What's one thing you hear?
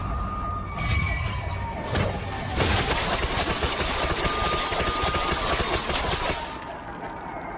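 Magical energy crackles and hums loudly.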